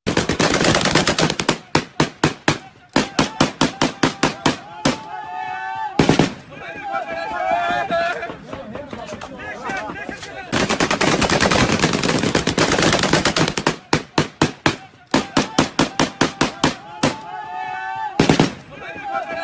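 Rifles fire in rapid, loud bursts close by.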